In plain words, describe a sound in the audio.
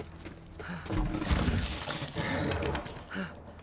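A heavy metal door rumbles as it slides open.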